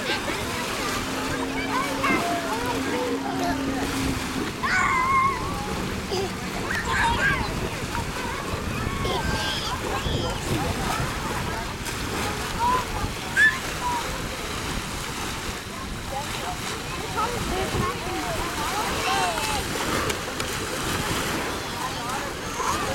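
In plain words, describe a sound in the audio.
A baby babbles softly nearby.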